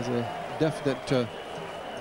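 A crowd claps and cheers.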